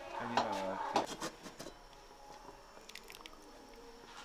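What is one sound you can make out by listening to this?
A metal lid clanks as it is lifted off a pot.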